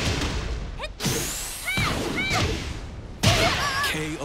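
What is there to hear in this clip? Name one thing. Fire whooshes in a burst.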